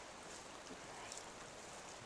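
Water flows steadily nearby.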